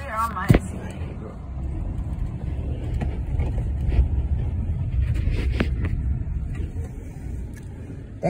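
Fingers rub and bump against a phone close up.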